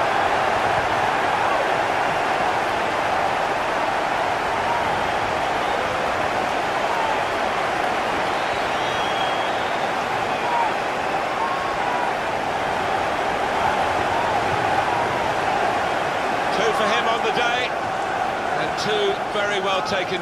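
A large crowd cheers and roars loudly in a stadium.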